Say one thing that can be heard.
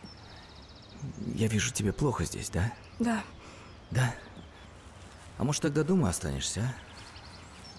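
A woman speaks with emotion close by.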